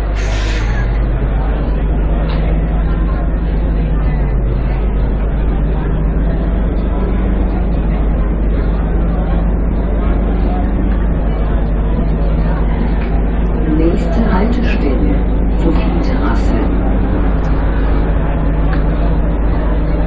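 A bus engine revs up as the bus pulls away and drives along.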